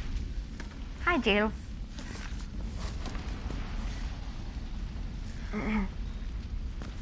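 A woman grunts and strains with effort.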